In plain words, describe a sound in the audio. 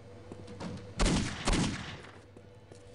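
A pistol fires with a loud, echoing bang.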